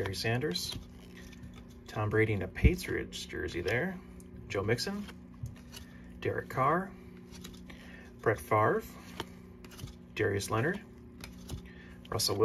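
Trading cards slide and rustle softly against each other.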